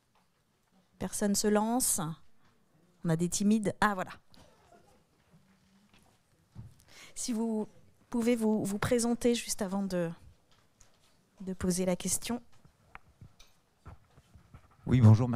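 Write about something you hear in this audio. A young woman speaks calmly into a microphone over loudspeakers in a large hall.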